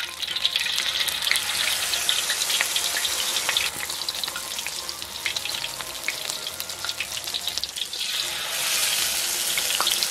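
Hot oil sizzles and crackles steadily.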